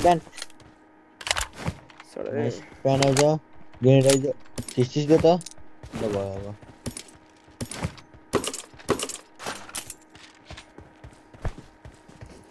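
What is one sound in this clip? Short game clicks sound as items are picked up.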